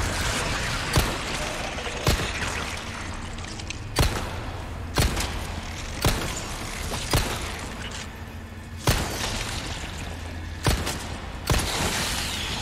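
A pistol fires loud shots again and again in an echoing space.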